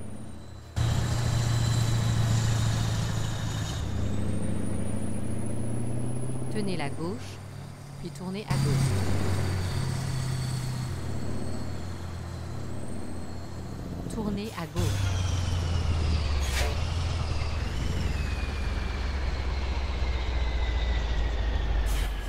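A heavy truck engine rumbles steadily, shifting pitch as it changes gears.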